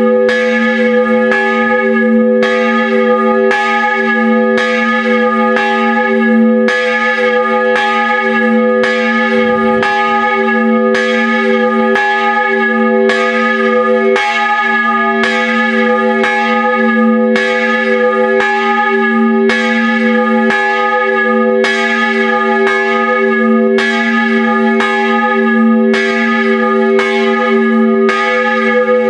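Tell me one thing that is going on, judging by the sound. A large bronze church bell swings and rings close up, struck by its clapper at a steady rhythm.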